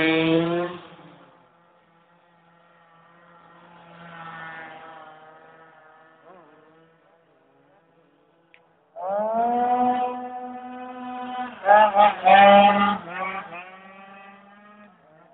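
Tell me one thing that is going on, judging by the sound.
A motorcycle engine roars and revs hard, rising and falling in pitch as it passes close by.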